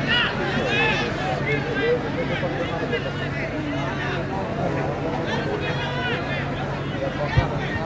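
Spectators whistle shrilly.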